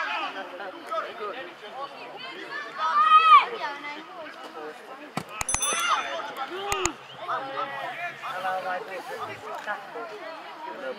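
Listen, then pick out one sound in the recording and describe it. Young men shout to each other outdoors across an open playing field.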